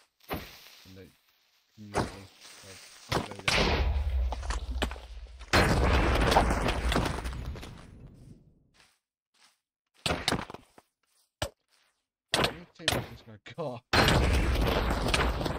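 Footsteps pad across grass.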